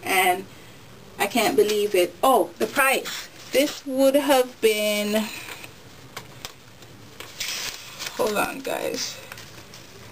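A woman talks with animation close to a microphone.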